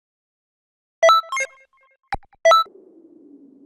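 Short electronic menu beeps sound one after another.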